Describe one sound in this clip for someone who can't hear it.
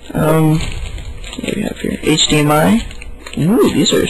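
A plastic wrapper crinkles and rustles in a hand.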